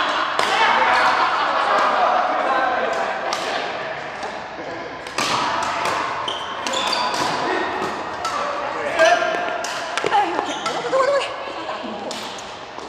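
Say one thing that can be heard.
Shoes squeak on the court floor.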